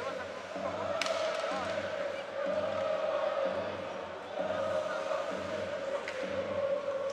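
A hockey stick clacks against the puck.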